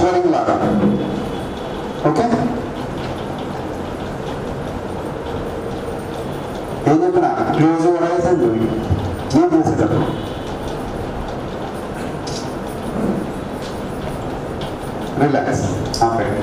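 A middle-aged man speaks calmly through a microphone, in short bursts with pauses.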